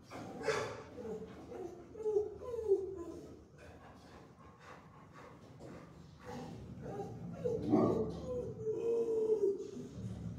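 A dog whines and yelps in a high voice.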